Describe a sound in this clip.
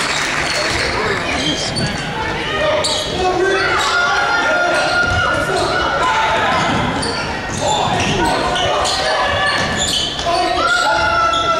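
Spectators talk and call out loudly nearby in a large echoing gym.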